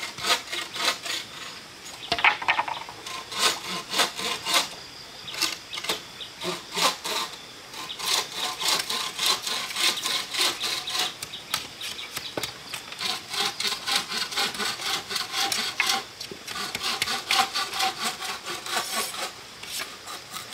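Bamboo poles knock and clatter against each other.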